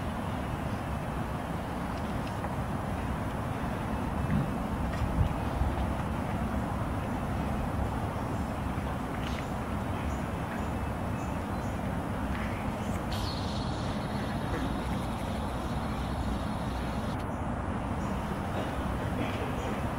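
A guard's shoes click in slow, measured steps on stone.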